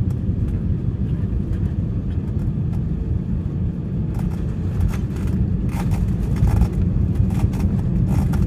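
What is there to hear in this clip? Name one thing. A plane's wheels rumble and thump on a runway.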